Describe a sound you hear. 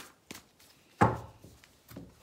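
A card is laid down on a soft tabletop with a dull thud.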